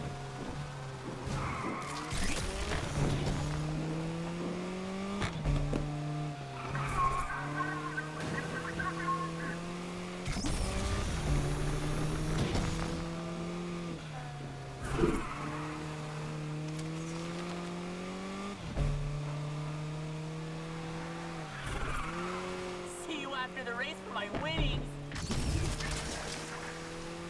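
A car engine revs high, climbing in pitch and dropping with each gear change.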